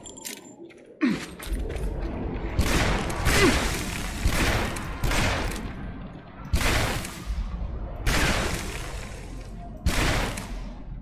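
A pistol fires repeated loud shots that ring out.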